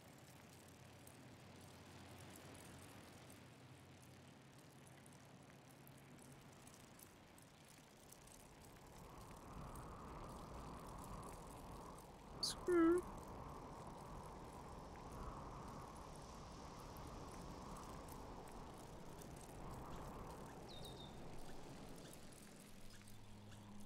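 Bicycle tyres roll over a gravel track.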